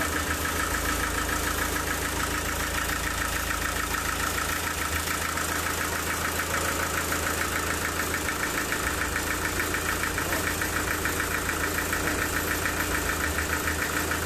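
A large saw machine runs with a loud, steady, rattling whine.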